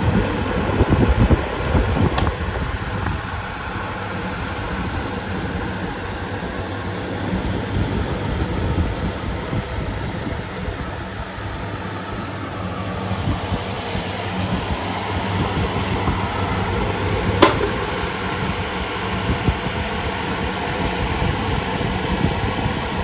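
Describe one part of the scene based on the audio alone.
Several electric fans whir and hum steadily.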